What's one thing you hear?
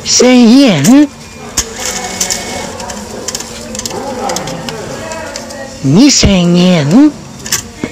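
A ticket machine whirs as it draws in banknotes.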